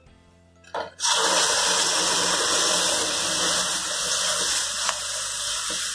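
Vegetables hit a hot pan and sizzle loudly.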